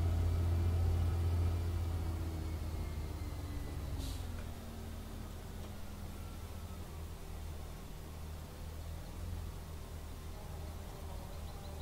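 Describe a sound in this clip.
A tractor engine rumbles steadily, its pitch slowly falling as it slows down.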